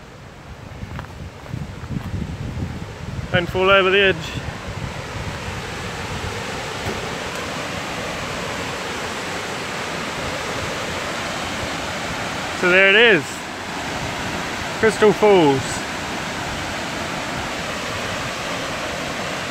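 A waterfall rushes and splashes steadily, growing louder as it comes near.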